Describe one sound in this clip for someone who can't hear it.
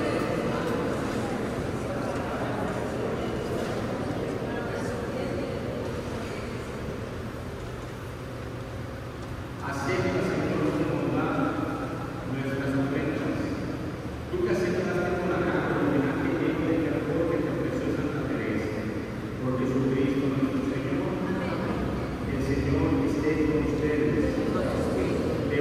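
A man speaks steadily through a loudspeaker in a large echoing hall.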